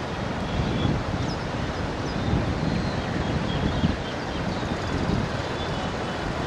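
A swollen river rushes and churns.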